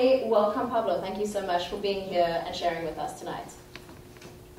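A young woman speaks into a microphone in an echoing room.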